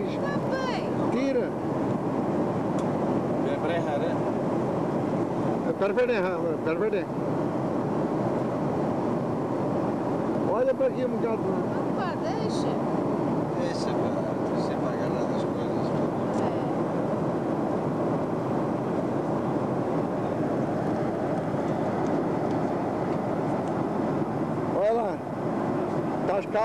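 The cabin of a jet airliner in flight hums with a steady roar.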